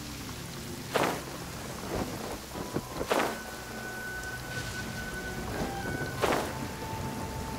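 Wind whooshes in short bursts as a figure glides through the air.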